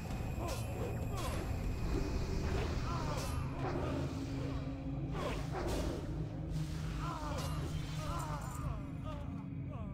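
Blades clash and spells burst in a game fight.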